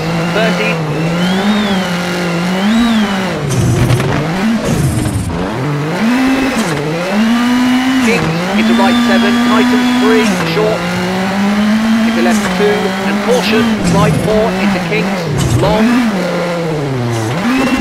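A racing car engine revs high and drops with each gear shift.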